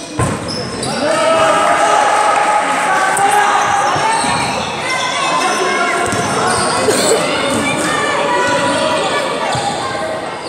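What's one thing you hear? Spectators shout and cheer in a gym.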